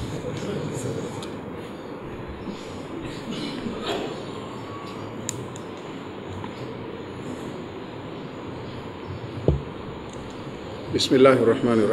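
An older man speaks quietly into a microphone.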